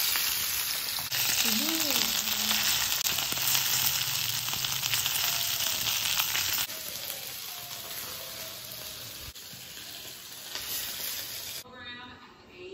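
Fish sizzles and spits in hot oil in a frying pan.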